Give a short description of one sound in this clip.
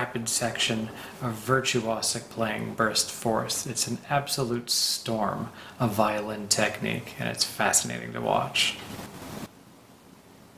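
A middle-aged man speaks calmly and warmly, close to a microphone.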